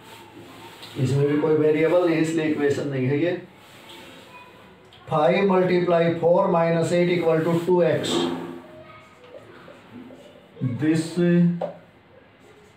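A man speaks calmly and clearly nearby, explaining.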